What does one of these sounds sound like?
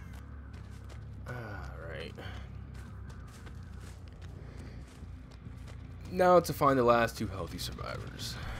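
Footsteps tread steadily over rough ground.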